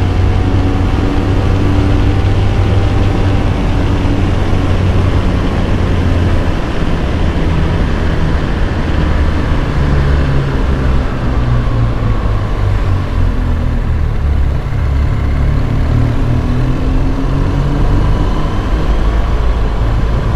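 A motorcycle engine hums steadily as the bike rides along a road.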